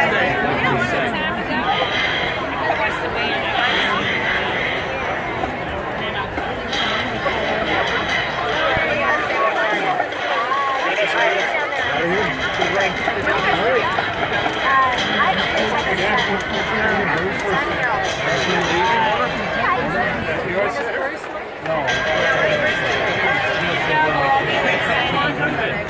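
A large crowd chatters loudly nearby, outdoors.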